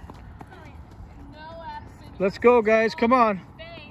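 Footsteps run across loose dirt.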